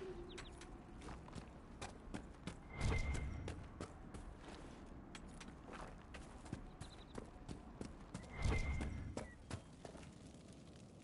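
Footsteps crunch over grass and stone.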